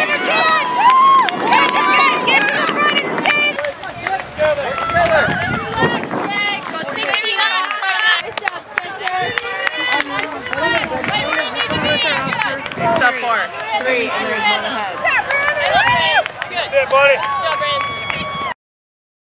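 A crowd of spectators cheers and shouts encouragement outdoors.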